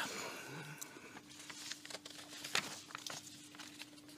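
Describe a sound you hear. Paper rustles and shuffles close by.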